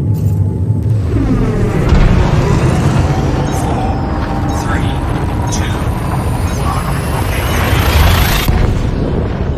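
A spaceship's jump drive builds into a rushing, rising roar and then cuts off.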